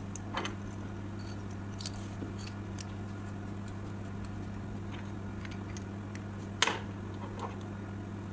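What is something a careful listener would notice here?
Small metal parts click and tap together as a pen is handled.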